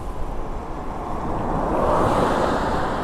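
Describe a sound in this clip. A car passes close by with a rising rush.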